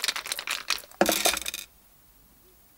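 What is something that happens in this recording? Dice clatter onto a table.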